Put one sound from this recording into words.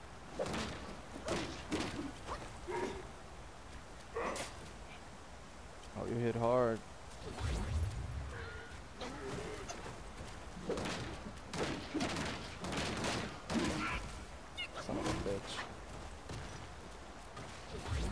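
Heavy blows and weapon strikes thud and clash again and again.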